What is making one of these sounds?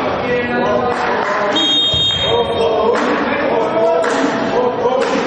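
Young players shout to each other in an echoing sports hall.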